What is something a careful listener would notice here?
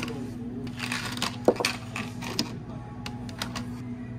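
Ice cubes clatter as they tumble into plastic cups.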